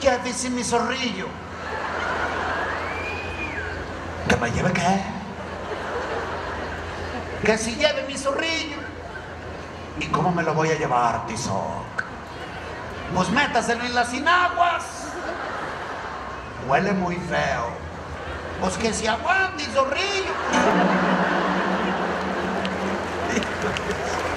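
A man speaks with animation through a microphone, in a large echoing hall.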